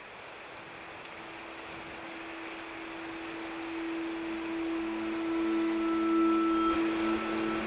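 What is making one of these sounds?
Water trickles and patters down onto rocks.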